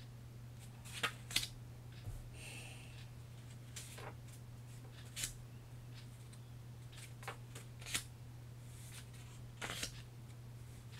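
Paper cards rustle and tap as a young man shuffles them.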